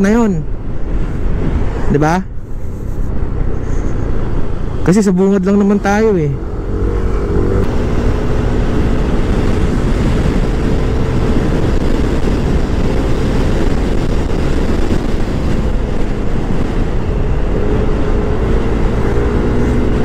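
Wind rushes past a microphone outdoors.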